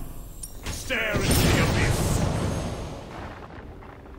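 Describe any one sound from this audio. A magical blast whooshes and roars.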